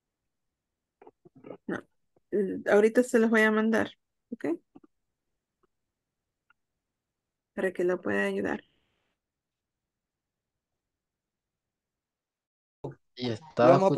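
A woman speaks calmly over an online call, in short bursts.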